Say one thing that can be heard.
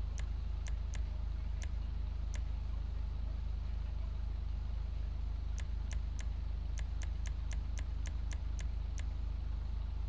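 Short soft clicks tick in quick bursts.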